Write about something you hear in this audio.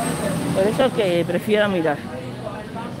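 People chat at nearby tables.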